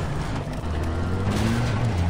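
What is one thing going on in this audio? Flames crackle from a burning wreck.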